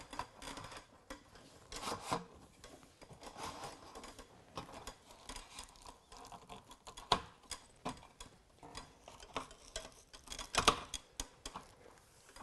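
Hands click and tap on a metal camping table.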